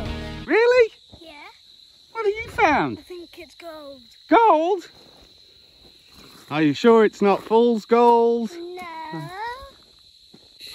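A young boy talks excitedly close by.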